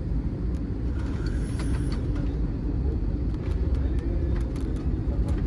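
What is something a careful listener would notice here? Aircraft tyres thump and rumble on a runway.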